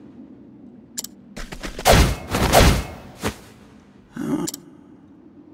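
Blows and clashes of a fight strike sharply several times.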